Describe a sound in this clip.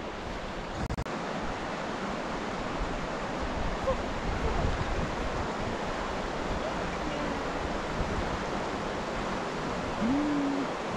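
A shallow river rushes and burbles nearby.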